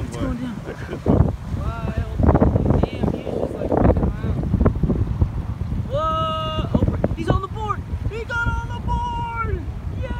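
Small waves lap and splash against the shore.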